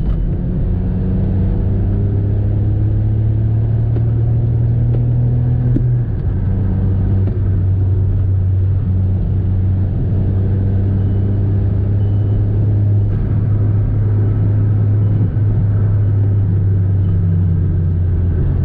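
A car engine hums steadily from inside the cabin, rising in pitch as it speeds up.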